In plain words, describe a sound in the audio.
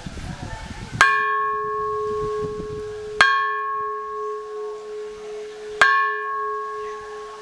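A large bell rings out loudly with a long ringing hum.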